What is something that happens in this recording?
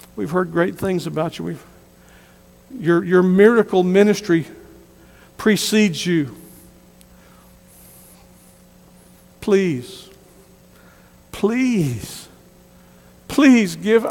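A middle-aged man preaches with emphasis through a microphone, in bursts with pauses, in a large room.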